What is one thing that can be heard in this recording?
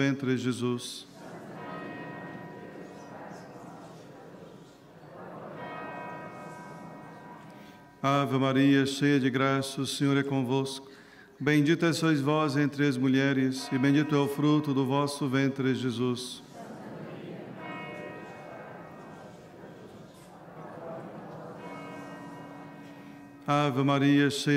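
Women murmur prayers in reply, softly and at a distance.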